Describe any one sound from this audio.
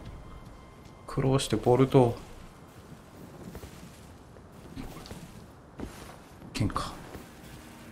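Footsteps tread over grass and stone.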